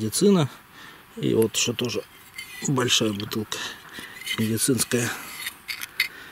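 Glass bottles clink together as they are handled.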